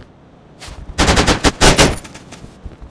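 A pistol fires several quick shots.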